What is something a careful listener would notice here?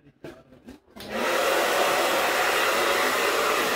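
A hair dryer blows with a loud steady roar.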